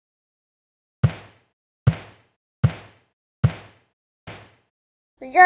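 A hammer bangs on a nail several times.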